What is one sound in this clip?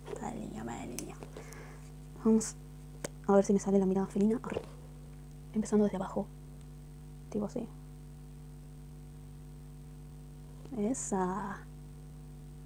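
A young woman talks calmly, close to a microphone.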